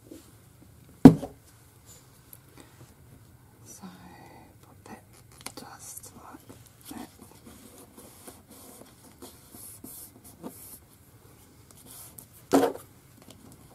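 Something knocks sharply on a table.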